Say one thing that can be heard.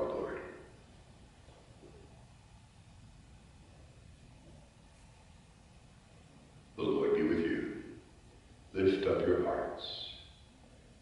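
A man chants aloud into a microphone in an echoing room.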